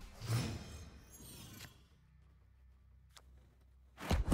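Game sound effects whoosh as cards are laid down.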